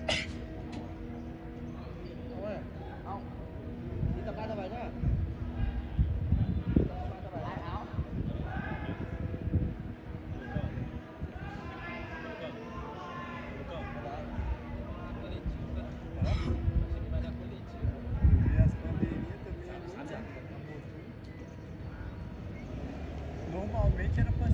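Young men talk and call out nearby, outdoors.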